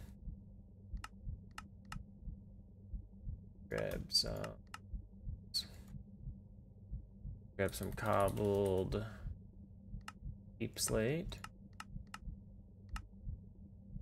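Short, soft clicks sound from a game menu as items are picked up and moved.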